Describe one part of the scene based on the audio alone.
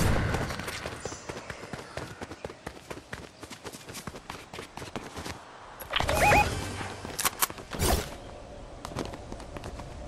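Footsteps patter quickly on ground and stone.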